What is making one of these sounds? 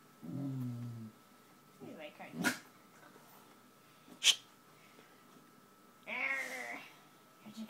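A dog groans and whines up close.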